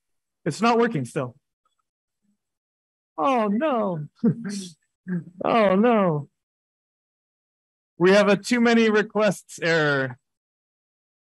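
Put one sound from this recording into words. A young man speaks through a microphone, pausing between phrases.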